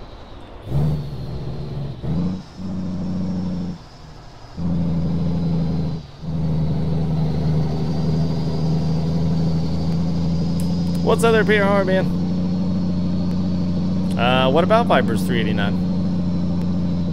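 A truck engine drones steadily, dropping out briefly a few times before settling.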